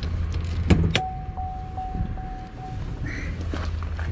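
A car's door-open chime sounds steadily.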